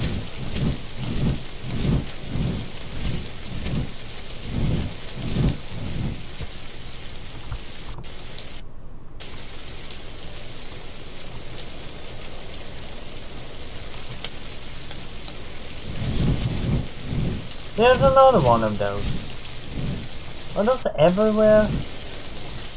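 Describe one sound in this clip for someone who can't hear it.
A man talks close to a microphone with animation.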